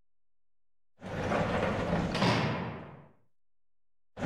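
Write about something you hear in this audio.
A metal mesh door creaks open with a rattle.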